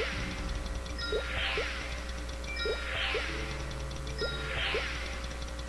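Electronic game chimes ring out with rising and falling tones, over and over at a steady pace.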